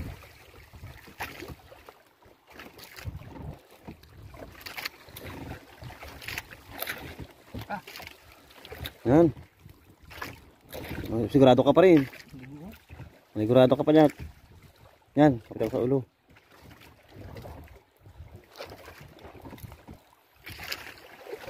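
A fishing net rustles and scrapes as hands pull at it.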